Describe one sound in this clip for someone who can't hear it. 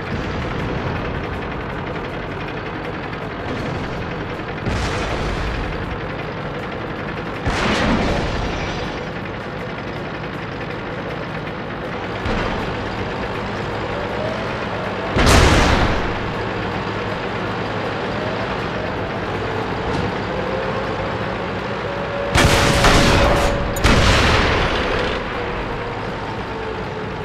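A tank engine rumbles steadily as the tank drives.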